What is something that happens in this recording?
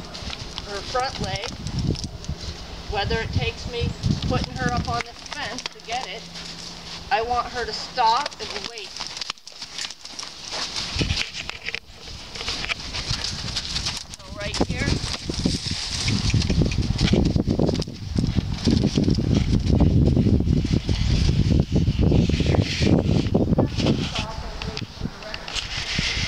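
A horse's hooves thud on sand.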